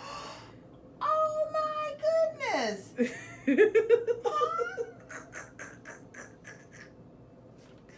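A woman exclaims excitedly and laughs loudly, close by.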